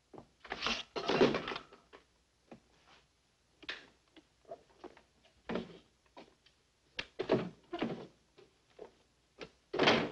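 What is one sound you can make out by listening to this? A man rummages through things, with rustles and knocks close by.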